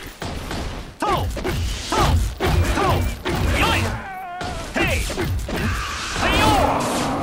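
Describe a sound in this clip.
Men shout and grunt in battle.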